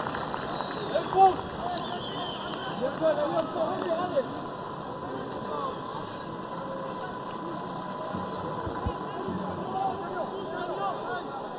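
A crowd murmurs and calls out in an open stadium.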